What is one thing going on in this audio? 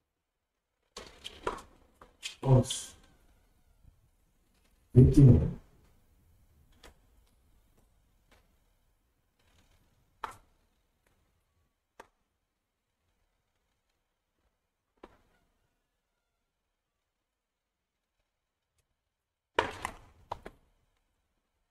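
A tennis ball bounces on a hard court.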